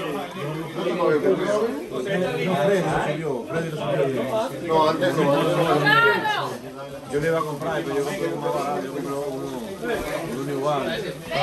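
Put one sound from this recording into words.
Several men and women talk and chat close by.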